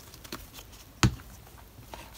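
A book knocks lightly on a tabletop.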